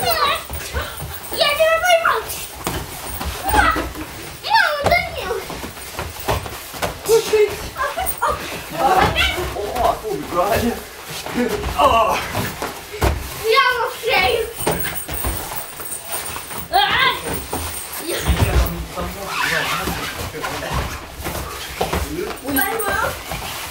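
Hands and feet thump on soft mats.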